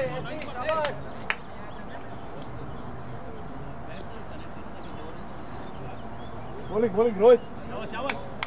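Men call out to each other outdoors, some distance away.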